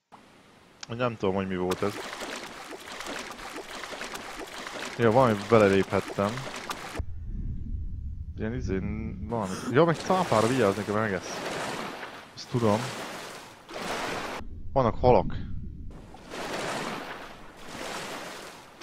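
Water splashes and swirls as a swimmer moves through it.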